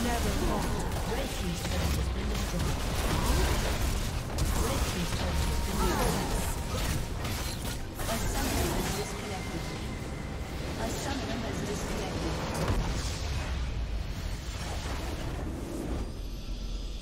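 Video game spell effects crackle and clash in a busy battle.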